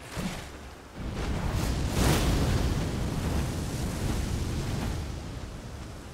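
Fire roars in loud bursts.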